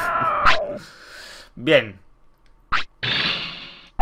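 Short electronic menu blips chime.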